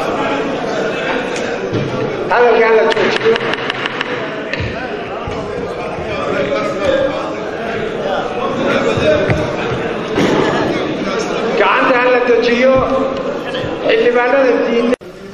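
A crowd of men talks and calls out at once in a large echoing hall.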